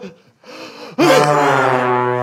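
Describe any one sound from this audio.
A man shouts loudly close to a microphone.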